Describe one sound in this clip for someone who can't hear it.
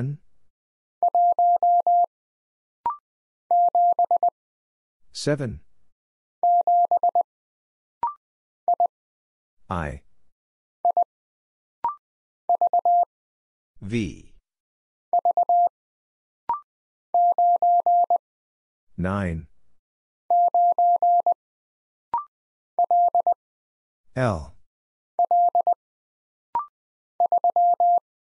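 A telegraph key taps out quick, steady beeps of Morse code.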